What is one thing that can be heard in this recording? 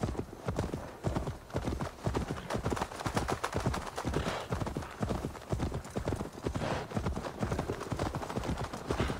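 Horse hooves thud steadily on soft ground at a trot.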